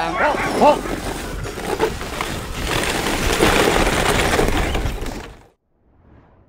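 A dog sled's runners hiss and scrape over snow.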